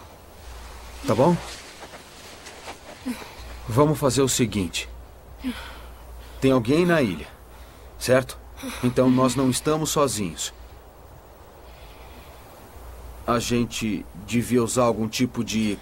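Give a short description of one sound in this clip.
A young man speaks quietly and earnestly, close by.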